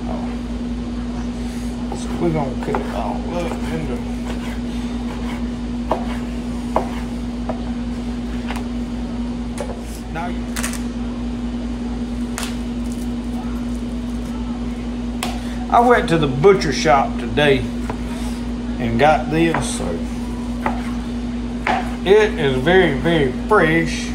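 A knife slices through raw meat on a wooden board.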